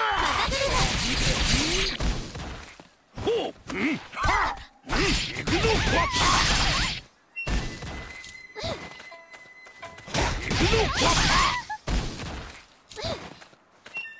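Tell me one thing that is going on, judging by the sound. Swords clash and slash in sharp, loud bursts.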